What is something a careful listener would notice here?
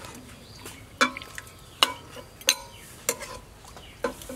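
A metal ladle clinks against a pot.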